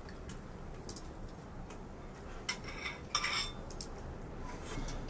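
Spoons clink and scrape against bowls.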